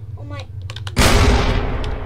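A revolver fires a loud shot.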